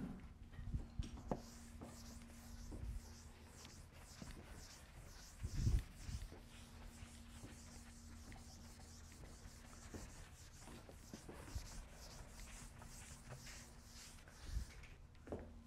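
A board eraser rubs steadily across a chalkboard.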